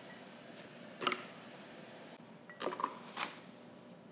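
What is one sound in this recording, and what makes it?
Small items clink and tap against a plastic bowl.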